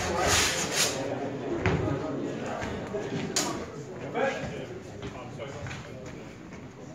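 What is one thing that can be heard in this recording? Feet scuff and stamp on the floor.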